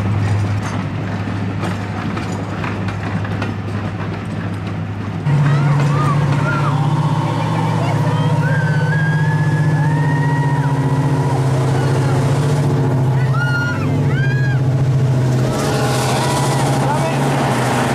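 A diesel locomotive engine throbs with a deep, steady rumble up close.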